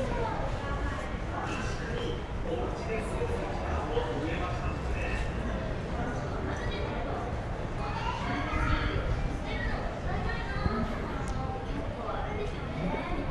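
Voices of people murmur in the distance outdoors.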